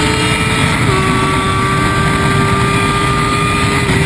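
Another motorcycle's engine passes close by.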